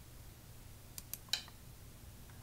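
A game stone clicks onto a board.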